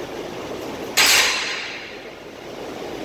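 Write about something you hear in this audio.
A loaded barbell clanks as it is set back onto a metal rack.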